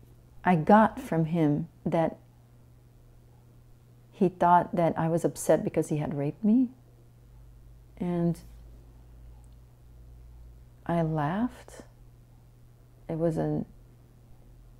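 A middle-aged woman speaks calmly and thoughtfully close to a microphone, with pauses.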